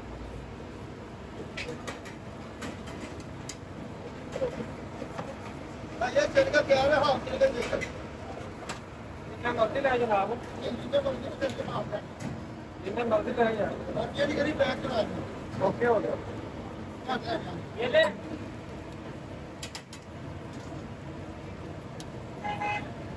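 Meat sizzles and crackles over hot coals.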